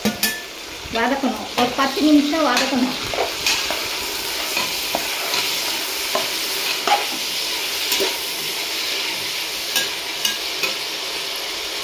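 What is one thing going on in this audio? A metal ladle scrapes and clatters against a metal pot.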